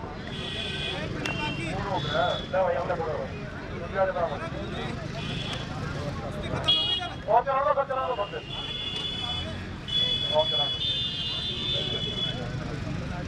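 Men in a crowd talk and call out nearby, outdoors.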